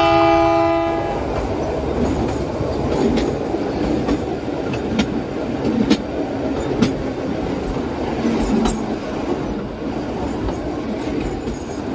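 A train rumbles along a track, its wheels clicking over rail joints.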